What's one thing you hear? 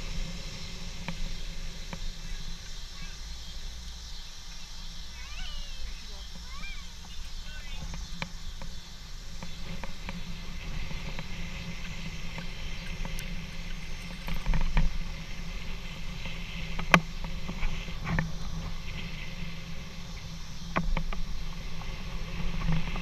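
Wind rushes past while riding outdoors.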